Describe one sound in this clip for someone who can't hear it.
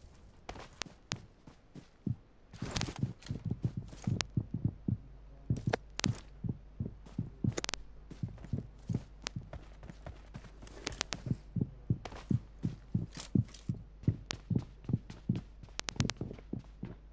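Footsteps thud quickly and steadily on the ground.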